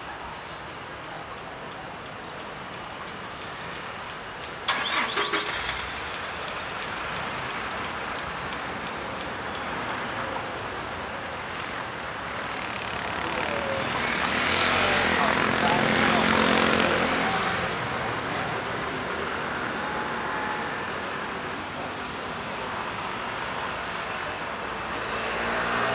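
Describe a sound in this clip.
Street traffic hums in the distance.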